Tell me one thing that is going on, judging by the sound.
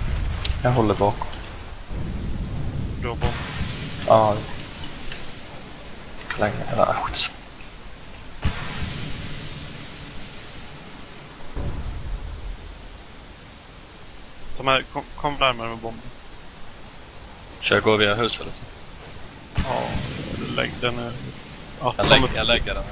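A young man talks into a close microphone in short, lively bursts.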